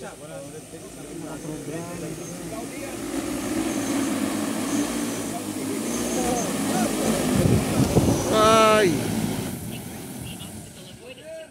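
A drone's rotors whir loudly, swelling as the drone comes close and then fading.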